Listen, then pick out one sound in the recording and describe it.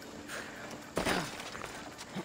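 A heavy thud sounds as someone lands after a jump.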